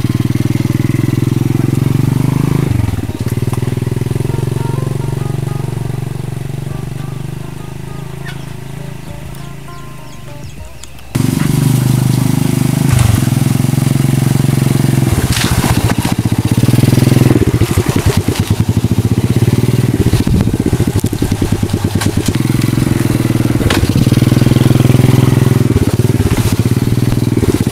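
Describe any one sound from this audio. A motorbike engine putters steadily, fading as the motorbike rides away and growing loud again up close.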